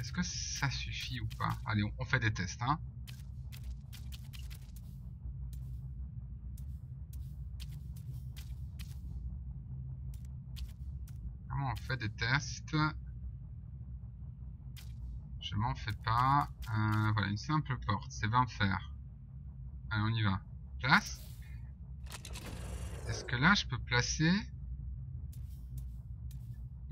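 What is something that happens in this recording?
Soft menu clicks tick now and then as options change.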